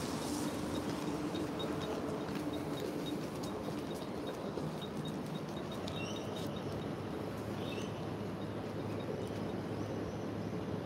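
A baby sucks and smacks softly on its fingers and a pacifier.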